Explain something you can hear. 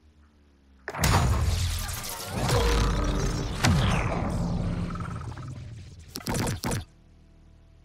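A loud booming reward sound swells and fades.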